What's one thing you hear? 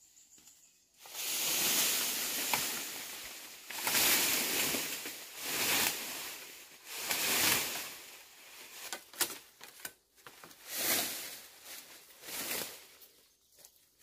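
Leafy branches rustle and swish as a person pushes through dense undergrowth.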